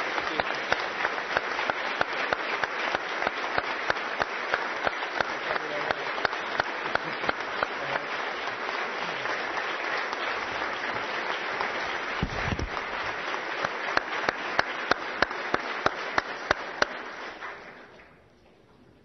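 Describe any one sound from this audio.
A crowd applauds loudly in a large hall and slowly dies down.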